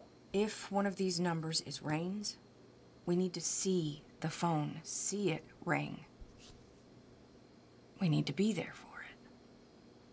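A woman speaks quietly and tensely close by.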